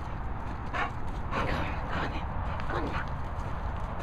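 A dog whines and yelps close by while playing.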